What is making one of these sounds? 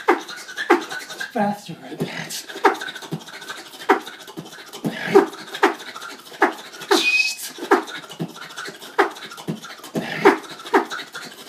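A young man beatboxes close by, making a steady rhythm of punchy mouth drum sounds.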